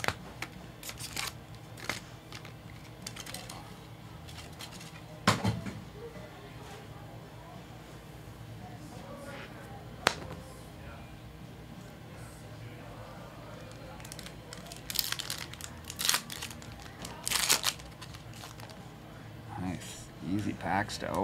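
Card packs rustle and slap as they are handled.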